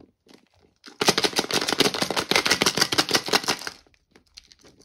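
A plastic capsule rattles as small pieces shake inside it.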